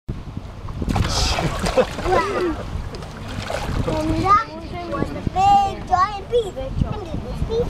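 Water splashes and churns below.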